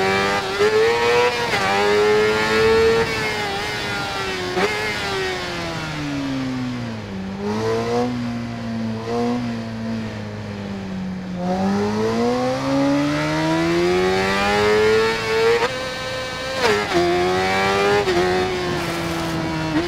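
An inline-four sport bike engine screams at high revs, shifting gears.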